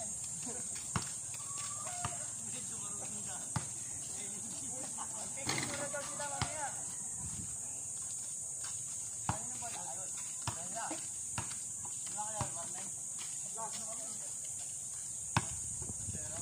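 A ball bounces on hard ground.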